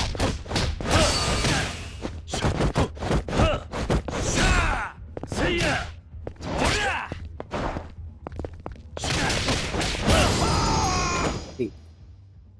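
Punches and kicks thud against a body in a brawl.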